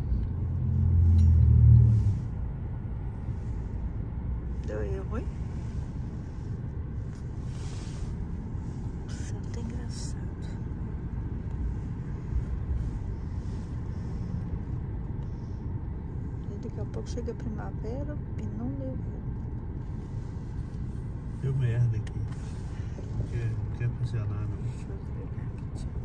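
A car engine idles with a low, steady rumble, heard from inside the car.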